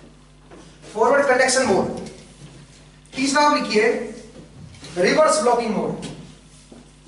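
A man speaks loudly and clearly in a lecturing tone.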